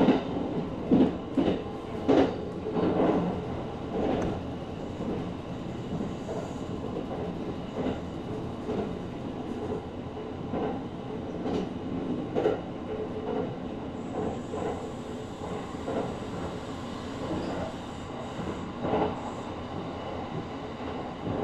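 A train rumbles steadily along the tracks from inside the cab.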